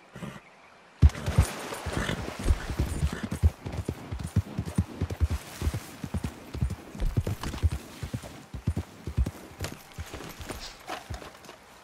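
A horse's hooves pound rapidly at a gallop.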